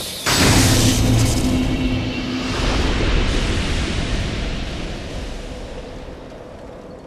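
A deep booming chime swells and slowly fades.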